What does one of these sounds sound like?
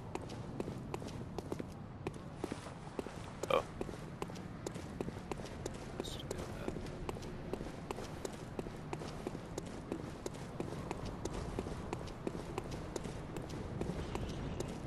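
Footsteps tap steadily on stone steps.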